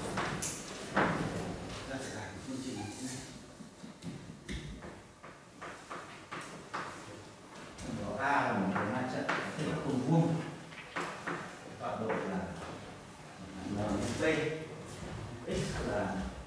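A man lectures calmly in a room with some echo.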